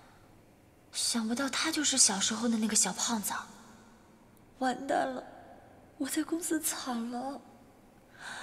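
A young woman speaks in a tense, emotional voice.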